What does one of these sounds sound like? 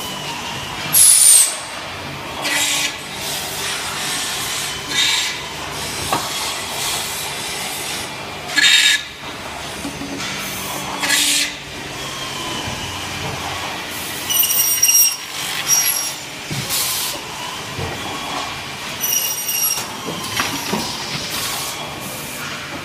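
An industrial machine hums and whirs steadily.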